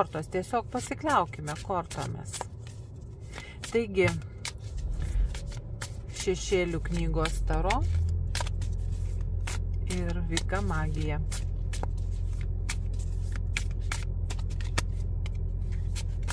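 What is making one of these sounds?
Playing cards riffle and flick softly as they are shuffled by hand.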